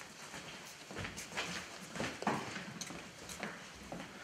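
Footsteps thud across a wooden stage.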